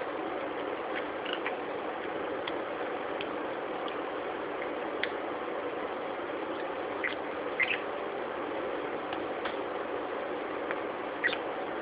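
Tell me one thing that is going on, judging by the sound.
A budgerigar chirps in short peeps.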